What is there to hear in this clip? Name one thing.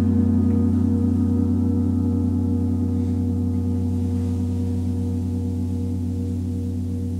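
A mallet rubs across a gong's face.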